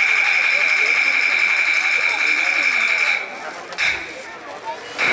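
Loud, shrill opera music plays through loudspeakers.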